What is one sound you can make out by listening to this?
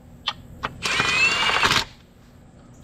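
A cordless impact driver whirs in short bursts.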